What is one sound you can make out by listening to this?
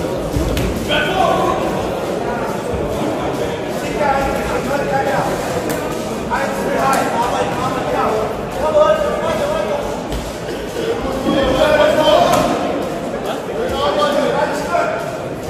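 Spectators shout encouragement in a large echoing hall.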